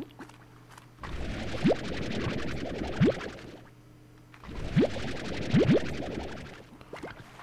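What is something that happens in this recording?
A video game vacuum gun whooshes as it sucks things in.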